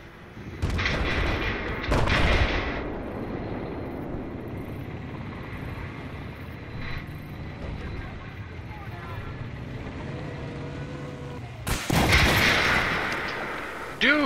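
Gunfire bursts loudly.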